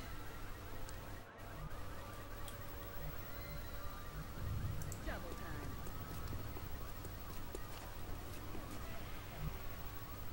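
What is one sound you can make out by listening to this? Fire crackles and pops.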